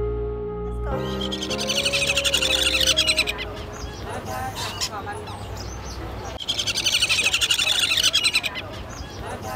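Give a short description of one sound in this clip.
Parrot chicks squawk and chirp shrilly.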